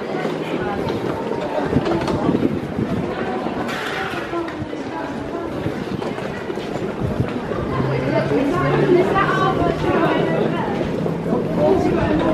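Suitcase wheels roll and rattle over a hard floor.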